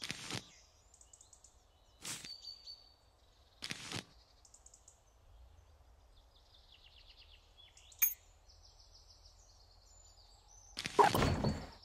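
Short game sound effects whoosh and chime as menu cards change.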